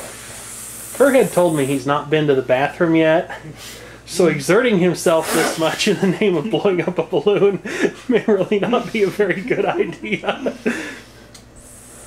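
A balloon squeals and whines in wavering tones as air rushes into it.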